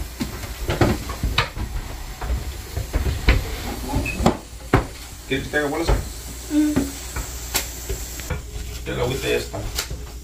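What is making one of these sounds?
Metal utensils clink and clatter against pans.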